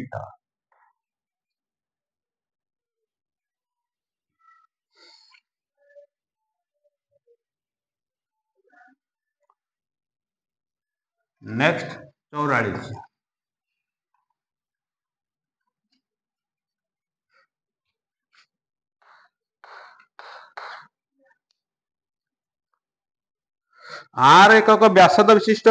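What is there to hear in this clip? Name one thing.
A man speaks calmly, close by, in short bursts.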